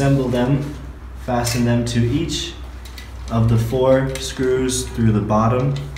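A metal plate scrapes and clicks against a metal frame.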